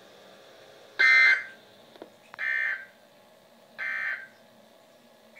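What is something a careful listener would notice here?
A radio sounds short high alert beeps.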